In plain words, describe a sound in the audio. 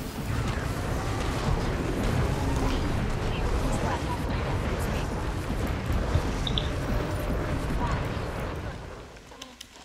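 Spells crackle and whoosh amid a noisy battle.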